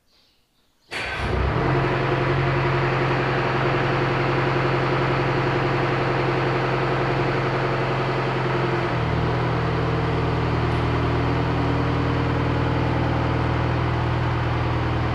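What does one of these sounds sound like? A car engine idles with a steady, loud rumble.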